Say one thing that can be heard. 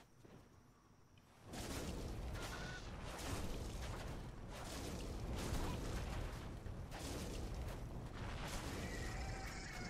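A sword swings and clashes.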